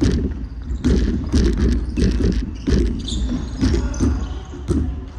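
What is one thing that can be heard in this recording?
A basketball bounces on a wooden floor, echoing through a large hall.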